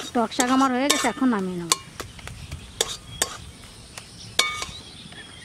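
A spoon clinks against a metal pan.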